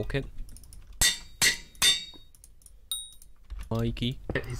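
A pickaxe strikes stone in a video game.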